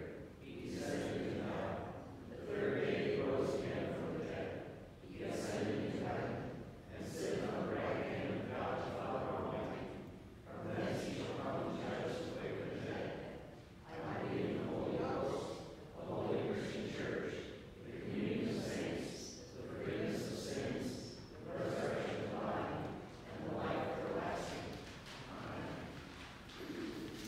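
A man speaks steadily through a microphone, echoing in a large hall.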